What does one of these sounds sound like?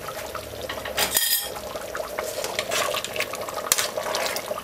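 A metal spoon clinks against the rim of a pot.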